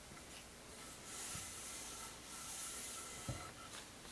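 A cloth rubs briskly along a wooden stick.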